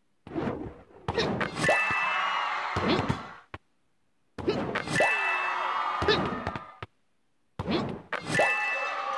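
Cartoon sound effects whoosh and chime in short bursts as balls are kicked.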